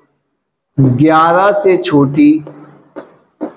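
A young man speaks loudly.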